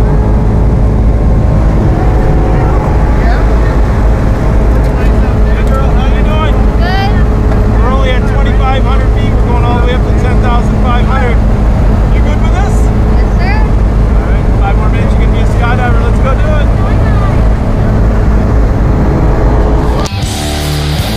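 An airplane engine drones loudly and steadily.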